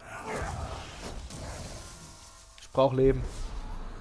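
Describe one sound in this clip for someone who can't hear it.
Swords clash and slash in combat.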